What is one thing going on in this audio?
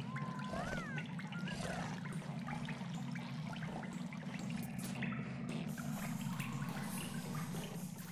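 A low steady hum of game music plays throughout.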